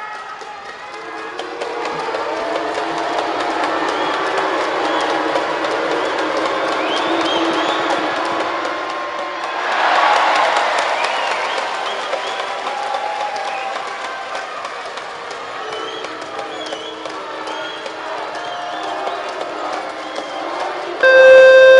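A large crowd chants and cheers loudly in an echoing arena.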